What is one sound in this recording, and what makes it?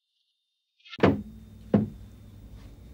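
A wooden lid thuds shut.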